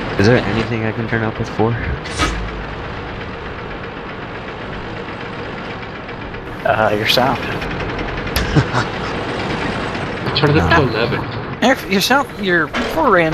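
A tank engine rumbles steadily as the tank drives over sand.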